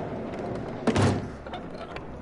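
A heavy thud sounds as a man falls.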